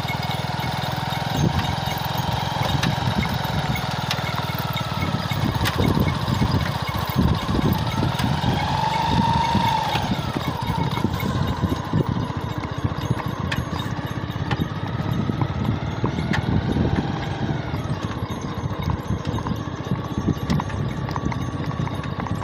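Horse hooves clop on a paved road.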